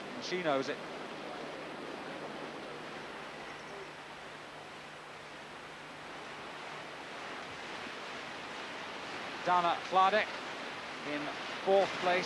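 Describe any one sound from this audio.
Fast water rushes and churns steadily.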